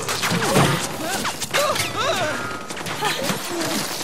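Gunfire rattles and bullets strike metal.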